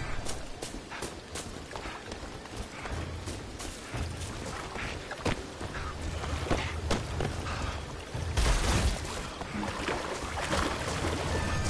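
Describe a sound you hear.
Footsteps crunch over dry leaves and twigs.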